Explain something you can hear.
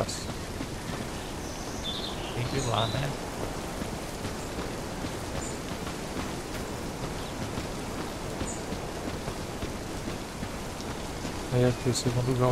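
Footsteps crunch steadily on hard ground.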